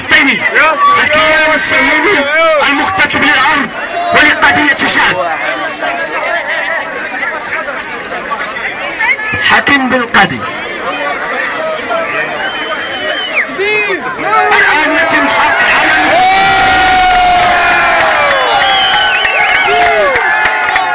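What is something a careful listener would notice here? A large crowd of young men shouts and cheers loudly outdoors.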